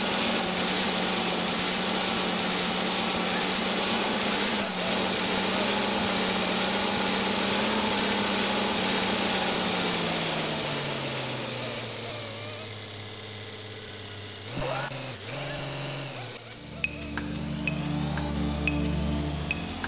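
A car engine hums steadily, slowing down and then revving up again.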